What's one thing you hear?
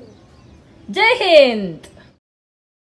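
A little girl calls out in a high, sliding voice close by.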